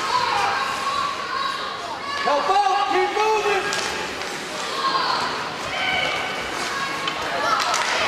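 Spectators shout and cheer in an echoing indoor rink.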